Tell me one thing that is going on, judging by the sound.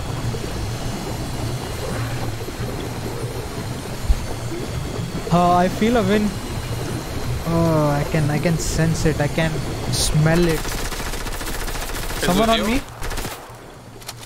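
Water rushes and swirls.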